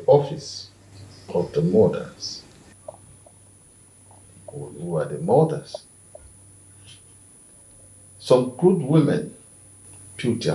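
An elderly man speaks in a deep, stern voice close by.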